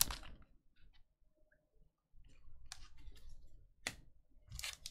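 Cards are shuffled and flicked through by hand.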